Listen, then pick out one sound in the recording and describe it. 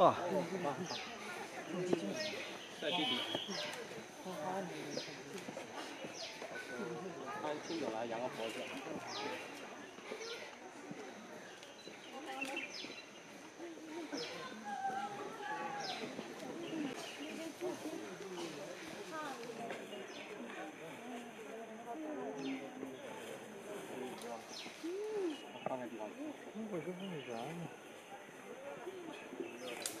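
A panda crunches and chews bamboo leaves close by.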